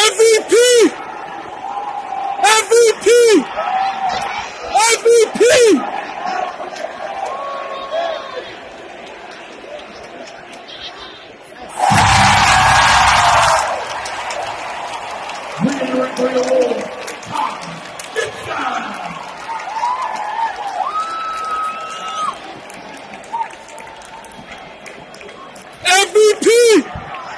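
A large crowd murmurs in a big echoing arena.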